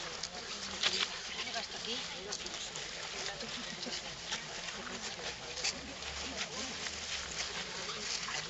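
A crowd of men and women murmurs and talks quietly nearby outdoors.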